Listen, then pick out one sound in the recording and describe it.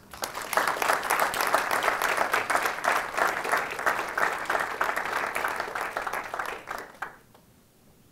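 An audience applauds loudly, then the clapping dies away.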